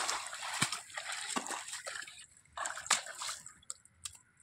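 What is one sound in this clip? A buffalo's hooves squelch and slap in wet mud.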